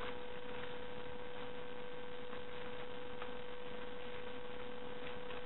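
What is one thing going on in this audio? Paper rustles and crinkles as hands unfold it.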